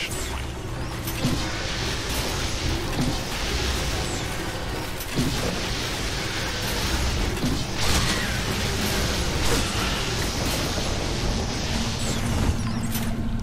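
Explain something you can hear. An energy beam crackles and hisses steadily.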